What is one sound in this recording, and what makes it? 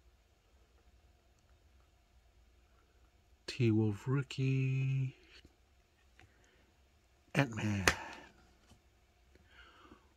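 Glossy trading cards slide and rustle softly against each other.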